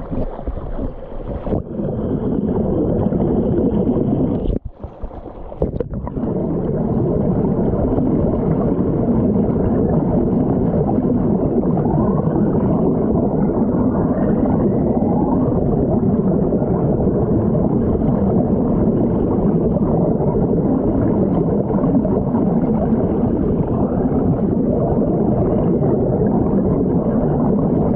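Shallow water rushes and gurgles over rocks.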